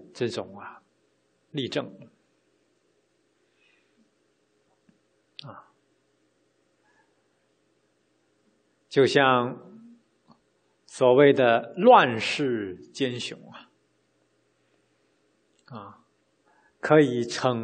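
A man speaks calmly into a microphone, with long pauses between phrases.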